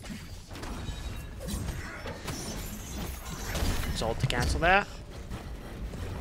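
Magical attacks crackle and zap.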